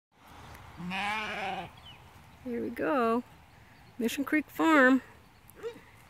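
Sheep bleat loudly nearby, several times.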